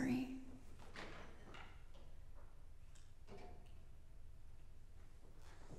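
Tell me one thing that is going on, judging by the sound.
A stringed instrument knocks softly as it is set down on a stand.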